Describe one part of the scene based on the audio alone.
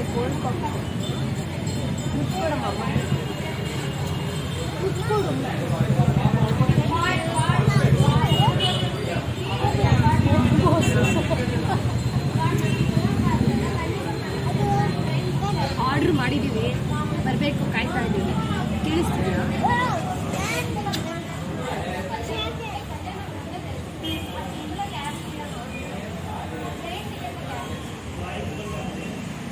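A young woman talks playfully and close by.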